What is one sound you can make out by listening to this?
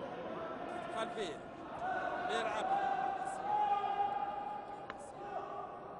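A ball is struck sharply with a hockey stick in an echoing hall.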